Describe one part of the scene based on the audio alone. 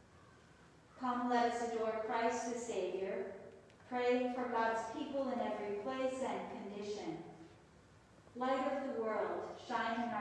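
An elderly woman reads aloud calmly into a microphone in an echoing room.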